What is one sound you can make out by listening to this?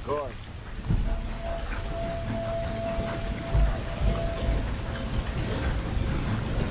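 A steam train rumbles and chugs nearby.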